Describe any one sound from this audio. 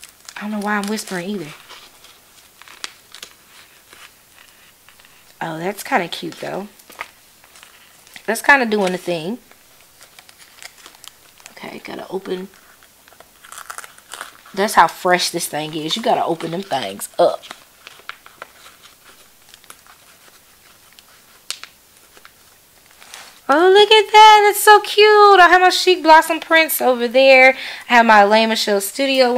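Paper sticker sheets rustle and crinkle as hands handle them.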